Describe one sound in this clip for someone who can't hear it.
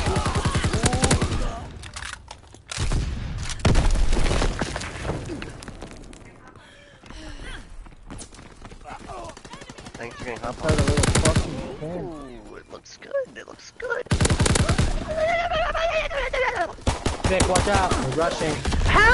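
Rapid gunfire bursts ring out in quick runs.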